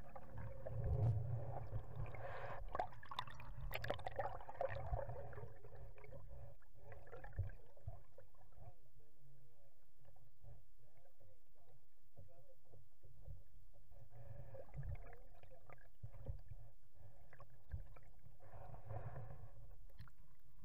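Water sloshes and gurgles close by, heard from just under the surface.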